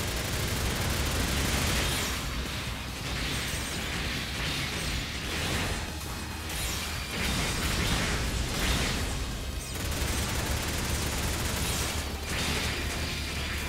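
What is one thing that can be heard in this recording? Beam sabres swing and slash with electric hums.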